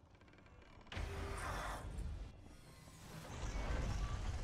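A magic blast crackles and bursts.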